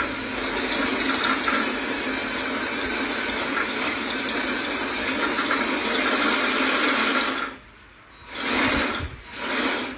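A small electric servo whirs in short bursts.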